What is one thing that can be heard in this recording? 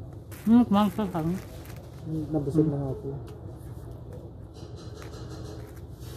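Food and plastic rustle and click as hands pick through it.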